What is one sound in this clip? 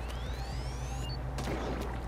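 A game blaster fires a splat of ink.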